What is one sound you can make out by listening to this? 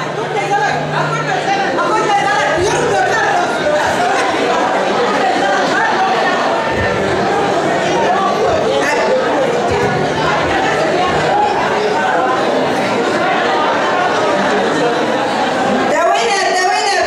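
A lively crowd of women chatters and cheers loudly in an echoing hall.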